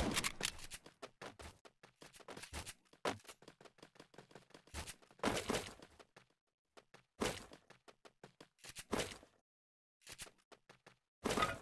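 Footsteps patter quickly across a wooden floor.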